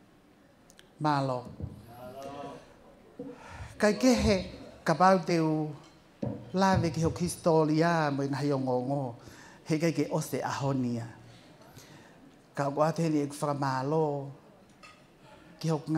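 A middle-aged woman speaks calmly into a microphone over loudspeakers.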